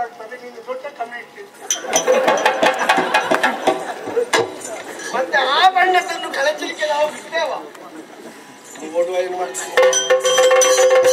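A man sings loudly through a microphone.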